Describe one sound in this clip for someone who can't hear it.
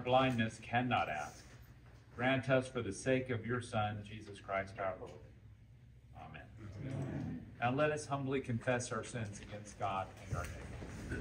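A man reads aloud calmly in an echoing room.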